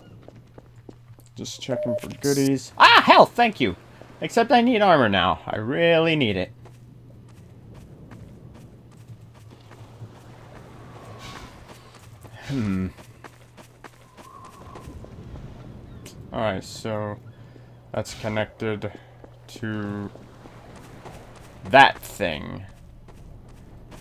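Footsteps crunch on gravel and concrete.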